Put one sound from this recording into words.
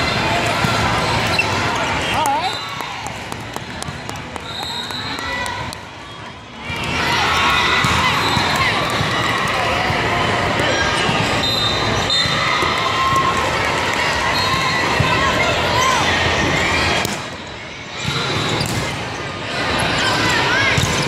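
A crowd of people chatters and cheers in a large echoing hall.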